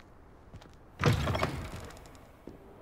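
A heavy door bangs open.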